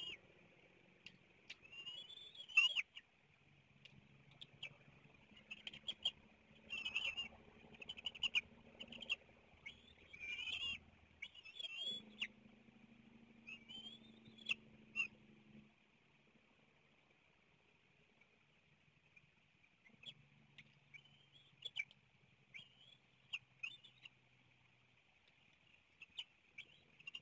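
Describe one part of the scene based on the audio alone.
Eaglets chirp and whistle in high squeals.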